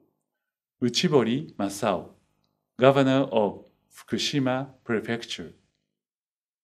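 A middle-aged man speaks calmly and formally into a close microphone.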